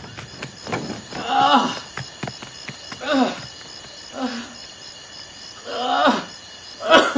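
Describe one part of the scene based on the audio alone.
A boy speaks quietly.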